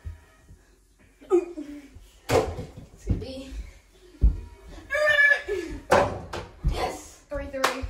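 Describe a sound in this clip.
A ball thuds against hands and the floor.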